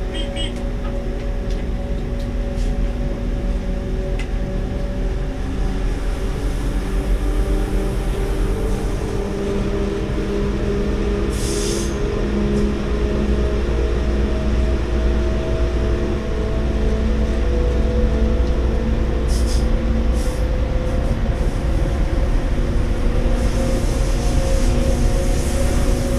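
Train wheels rumble and click over the rails.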